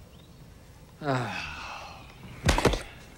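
A man exclaims with a falling voice, close by.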